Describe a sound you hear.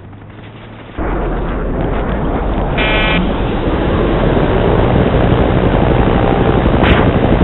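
A helicopter engine roars steadily up close.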